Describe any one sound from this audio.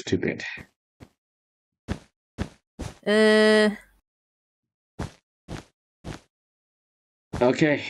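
Blocks are placed one after another with short soft thuds.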